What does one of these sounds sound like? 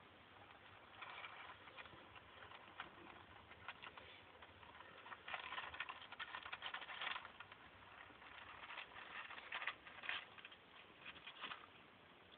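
Dry wood chips rustle and clatter as a snake crawls through them.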